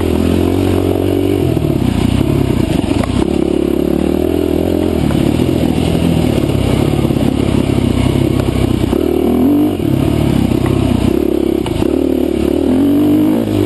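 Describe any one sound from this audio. A dirt bike engine revs and drones loudly up close, rising and falling in pitch.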